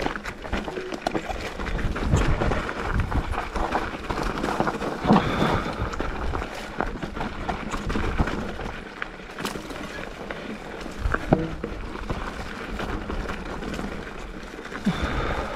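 A bicycle's frame and chain clatter and rattle over bumps.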